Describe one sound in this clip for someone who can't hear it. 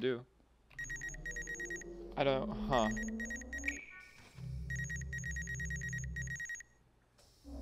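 A game's scanner beeps in rapid, repeating pulses.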